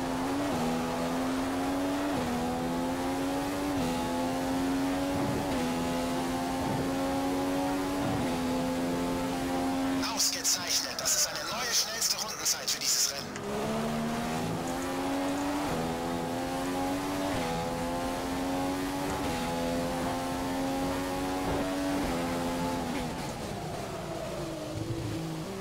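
A racing car engine screams at high revs, climbing in pitch and dropping sharply with each gear change.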